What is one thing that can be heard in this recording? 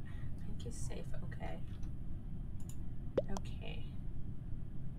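A young woman speaks briefly and quietly into a close microphone.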